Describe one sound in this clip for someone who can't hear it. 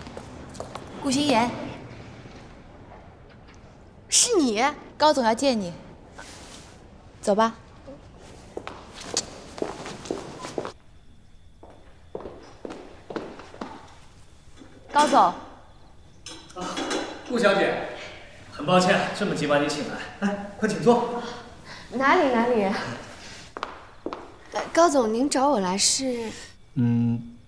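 A young woman answers in surprise, close by.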